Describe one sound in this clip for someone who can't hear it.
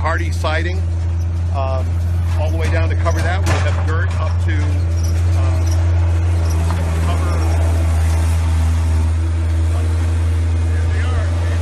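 A diesel engine idles nearby with a steady low hum.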